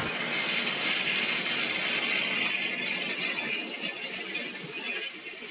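A furnace roars steadily nearby.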